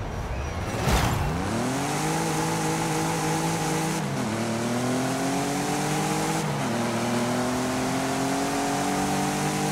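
A car engine revs up and accelerates hard, shifting gears.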